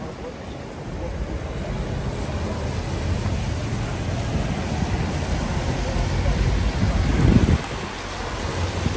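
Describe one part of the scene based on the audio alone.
A double-decker bus rumbles past close by.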